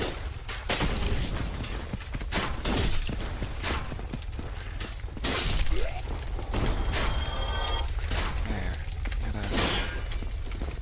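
Metal weapons clash and clang against shields.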